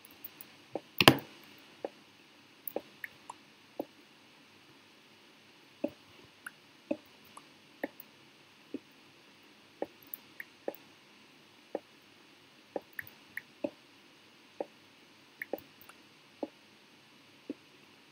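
Footsteps tap on stone again and again.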